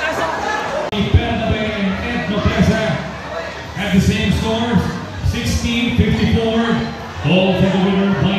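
A man announces loudly through a loudspeaker, his voice echoing.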